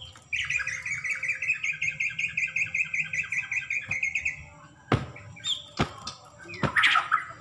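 A bird flaps its wings in a cage.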